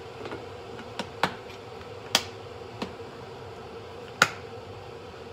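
A plastic lid snaps onto a food container.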